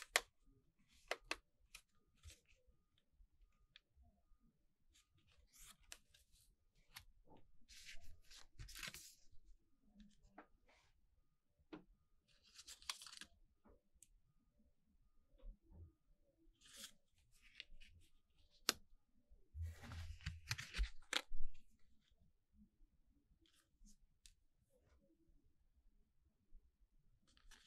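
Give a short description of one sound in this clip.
Hands handle stiff paper cards, with soft rustling and light taps.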